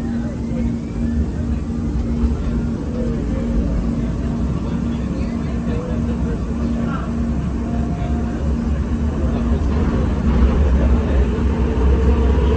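A train rumbles and picks up speed as it pulls away.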